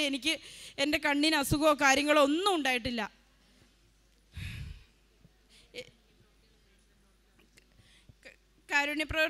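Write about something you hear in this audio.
A middle-aged woman sings loudly into a microphone.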